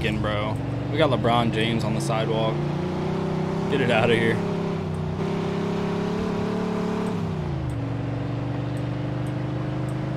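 A car engine hums steadily and drops in pitch as it slows.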